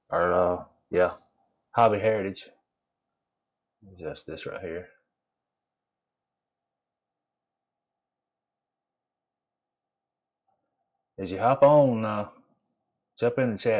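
A man talks casually into a microphone, in short bursts with pauses.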